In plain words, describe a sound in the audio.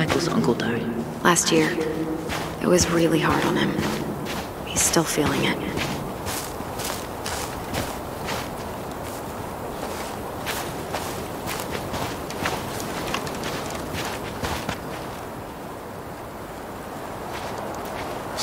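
Footsteps crunch through snow and forest ground.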